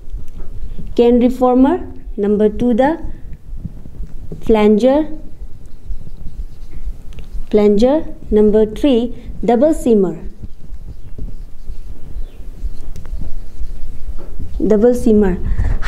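A young woman speaks calmly and slowly, close by.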